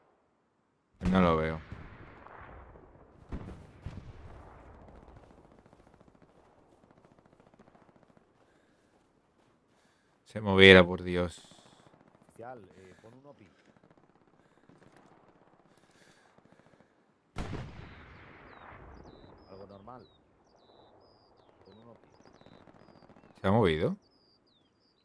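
Explosions boom in the distance, with long rumbling echoes.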